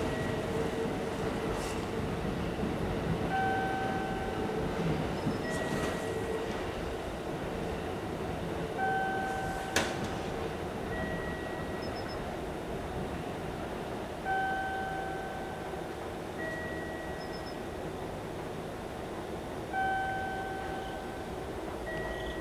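A two-note electronic chime rings over and over from a loudspeaker, echoing along an open platform.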